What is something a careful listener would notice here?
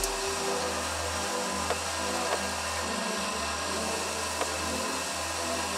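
A sanding belt rasps against a wooden board.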